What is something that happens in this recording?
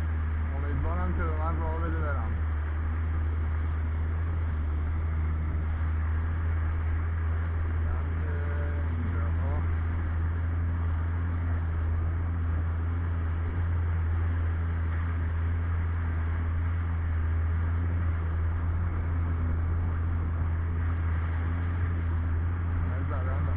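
Water splashes and churns against a jet ski's hull.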